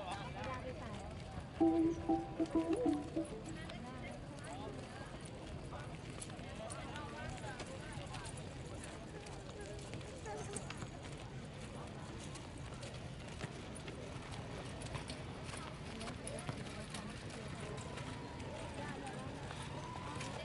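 A large crowd chatters faintly outdoors in the open air.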